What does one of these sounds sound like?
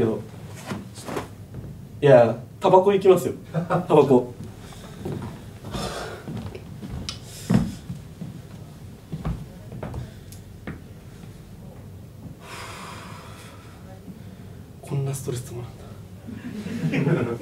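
A young man speaks loudly and with animation in an echoing room.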